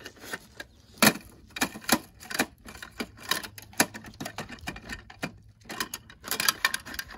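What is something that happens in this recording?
A small plastic bin knocks against a toy truck.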